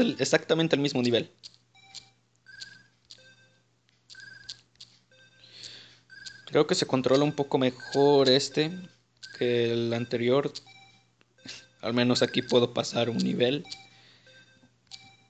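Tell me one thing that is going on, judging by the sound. Short electronic beeps chirp again and again as a ball bounces in a retro video game.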